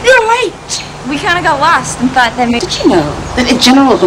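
A teenage girl talks cheerfully.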